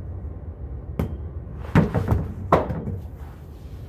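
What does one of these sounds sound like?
A ball thumps several times as it is thrown and caught.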